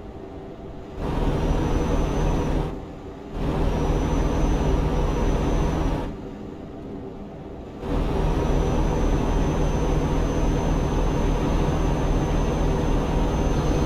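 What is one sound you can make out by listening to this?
A truck engine roars loudly as the driver accelerates.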